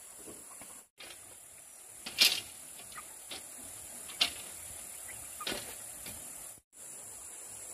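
Chickens peck at gravel.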